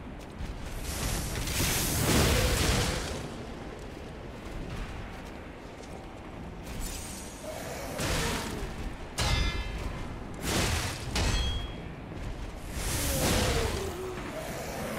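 Metal weapons clash and clang loudly.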